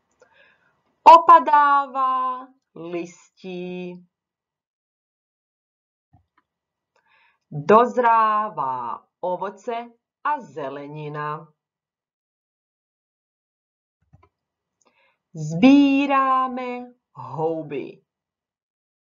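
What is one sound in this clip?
A young woman speaks calmly and clearly into a microphone, in short phrases with pauses.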